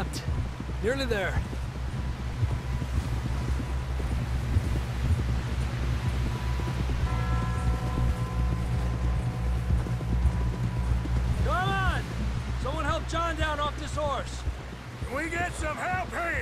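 Horse hooves thud steadily on snow.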